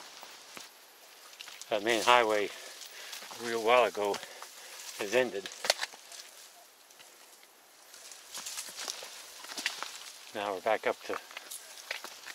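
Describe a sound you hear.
Footsteps crunch on a dirt and gravel trail.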